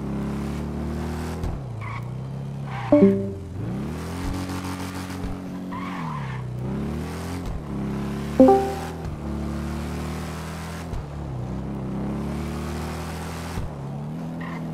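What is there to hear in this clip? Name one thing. A motorcycle engine roars, revving up and down as it speeds along.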